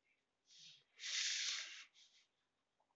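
A pencil scratches across paper along a ruler.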